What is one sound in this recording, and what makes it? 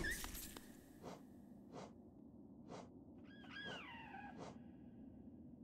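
Soft menu clicks and chimes tick one after another.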